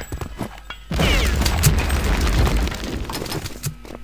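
A grenade explodes with a deep boom.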